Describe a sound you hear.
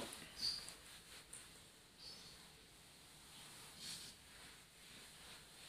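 A felt eraser rubs across a whiteboard.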